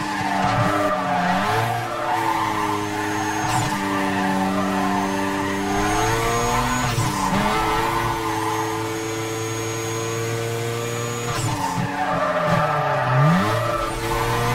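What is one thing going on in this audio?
Tyres screech as a car drifts through bends.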